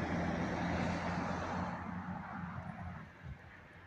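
A car drives past close by with a rushing whoosh.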